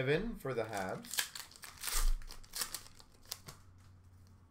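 A foil card pack crinkles and tears as hands open it.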